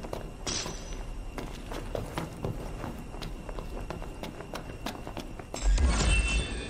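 Footsteps tap quickly on a hard floor.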